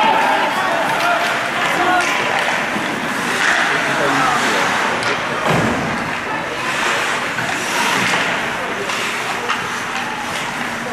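Ice hockey skates scrape and carve across ice in an echoing rink.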